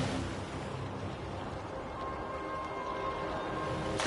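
Water splashes at the surface as a shark swims through it.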